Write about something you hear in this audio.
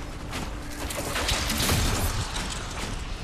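Electric bolts crackle loudly.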